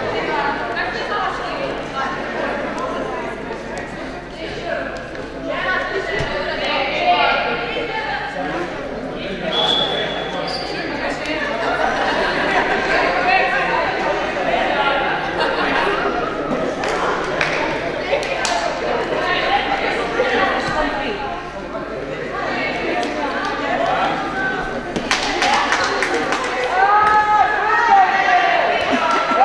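Many young voices chatter and shout in a large echoing hall.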